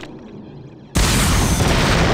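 A gunshot bangs loudly.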